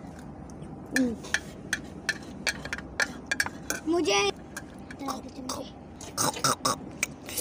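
A metal spoon clinks and scrapes against a ceramic plate.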